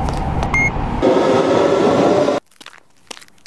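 A train rumbles along a track.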